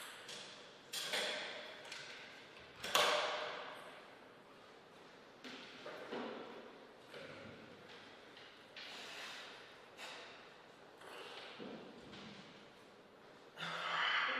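A table tennis ball clicks sharply in an echoing hall.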